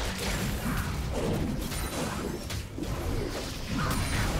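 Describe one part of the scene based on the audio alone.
Magic blasts and hits crackle and burst in a fast fight.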